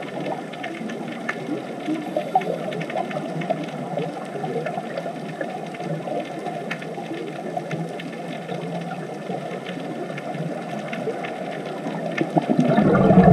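Scuba divers' exhaled bubbles gurgle and rumble underwater.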